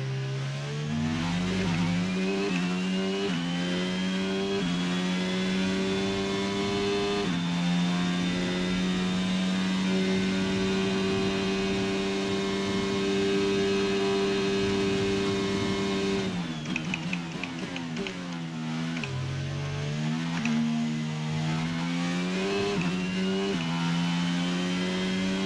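A racing car engine screams loudly, rising in pitch through the gears.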